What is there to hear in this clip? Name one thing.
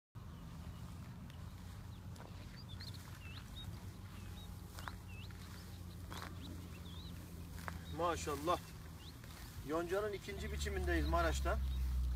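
A man walks through plants that rustle around his legs.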